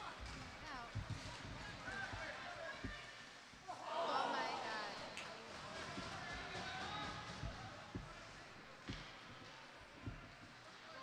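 Hockey sticks knock and slap the puck.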